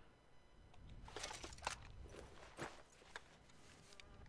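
A shotgun's metal parts click and rattle as it is handled.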